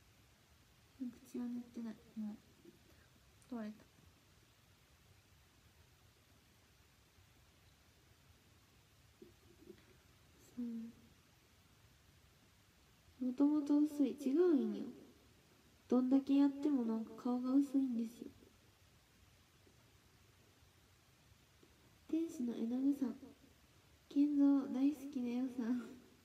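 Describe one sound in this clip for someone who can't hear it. A young woman speaks casually and softly into a close microphone, with pauses.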